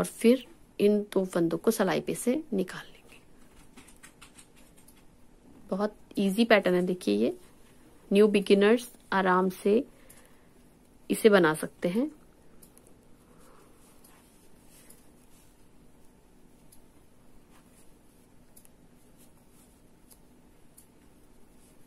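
Knitting needles click and tick softly.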